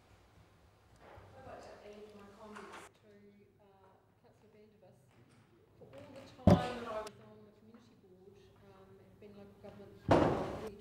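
A woman speaks through a microphone in a large room.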